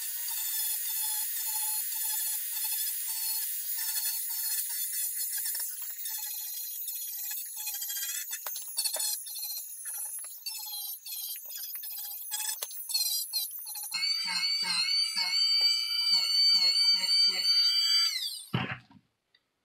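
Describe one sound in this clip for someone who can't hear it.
A rotary tool grinds against foam with a rasping scrape.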